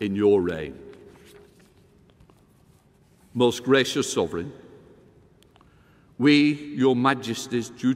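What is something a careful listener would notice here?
An elderly man speaks slowly and formally into a microphone in a large echoing hall.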